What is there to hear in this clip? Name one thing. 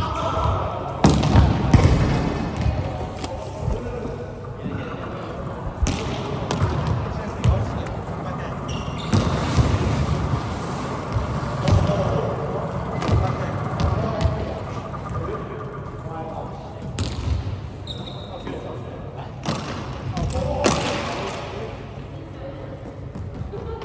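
Sneakers squeak on a wooden gym floor.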